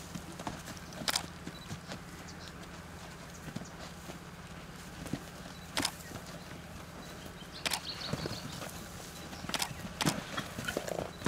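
A horse's hooves thud on dry ground as it bucks and runs.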